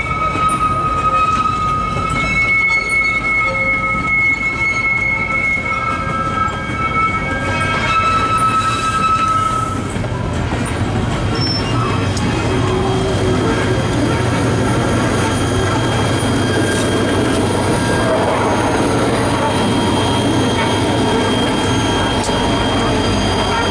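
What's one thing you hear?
Train cars rumble and clatter past on the rails close by.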